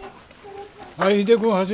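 A small child calls out in a high voice.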